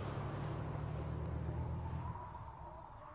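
A car engine rumbles in the distance and fades away.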